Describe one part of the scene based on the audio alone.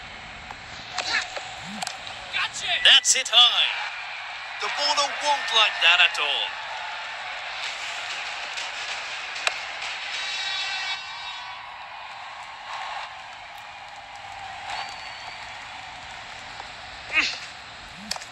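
A bat cracks against a ball.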